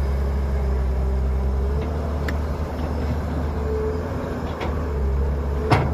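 Dirt and clods thud into a truck bed.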